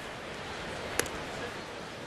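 A baseball smacks into a leather glove.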